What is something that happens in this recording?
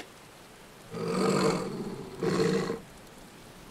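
A wolf growls low.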